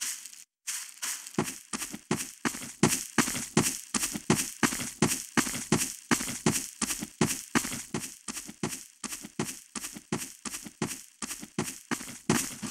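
Footsteps tread steadily across the ground.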